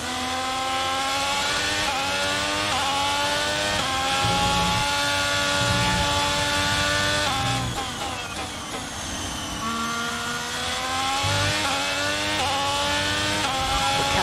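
A racing car engine screams at high revs, climbing in pitch and dropping with each gear change.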